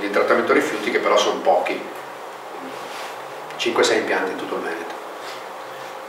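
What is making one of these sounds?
A middle-aged man speaks calmly in a room with a slight echo.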